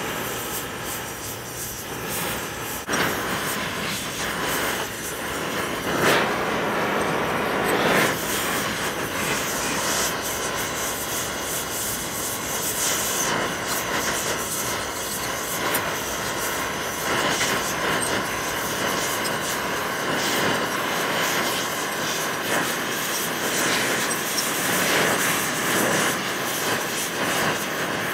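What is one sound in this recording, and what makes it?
A gas torch roars with a steady, hissing flame.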